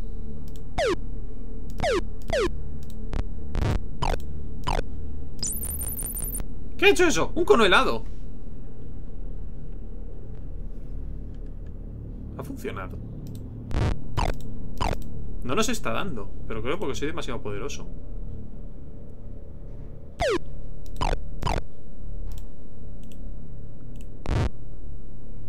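Electronic game sound effects zap and blip in short bursts.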